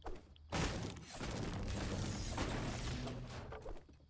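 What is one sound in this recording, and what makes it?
A short chime rings as an item is picked up.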